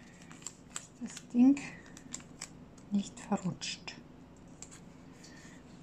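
Masking tape crinkles and rustles as hands press it down.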